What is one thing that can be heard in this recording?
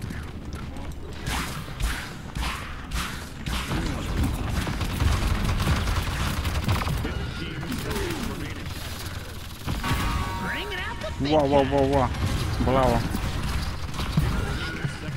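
Game weapons fire in quick bursts.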